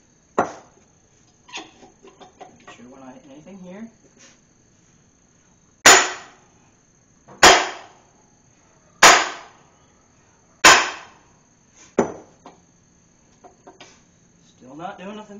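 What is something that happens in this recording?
Metal parts scrape and rattle as a man handles them.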